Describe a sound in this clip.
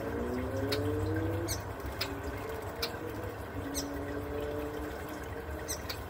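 A small bird splashes in shallow water.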